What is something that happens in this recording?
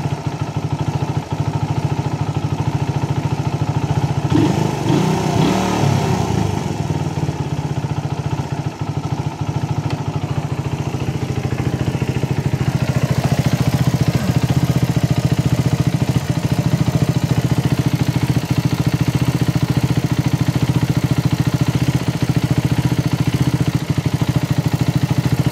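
A motorcycle engine idles with a steady, low, rapid putter close by.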